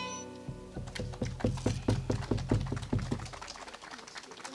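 Guitars strum a lively tune.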